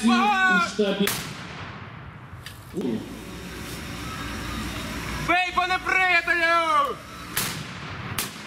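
A field cannon fires with a loud boom.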